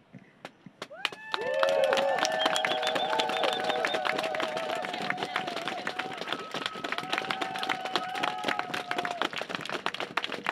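A crowd sings together.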